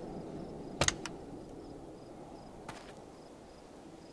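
A car door creaks open.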